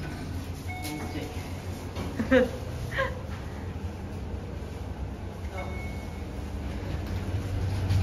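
A man's footsteps walk across a hard floor.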